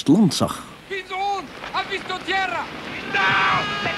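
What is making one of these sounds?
An elderly man speaks.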